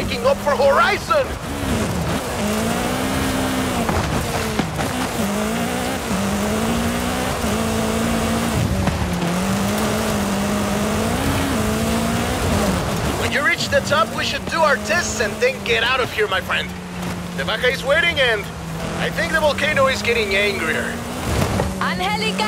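A car engine roars steadily, rising and falling as it revs.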